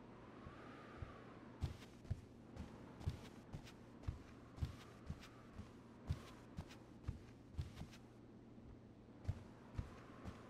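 Footsteps thud steadily across a floor.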